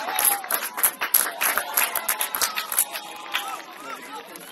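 A small crowd cheers and claps outdoors.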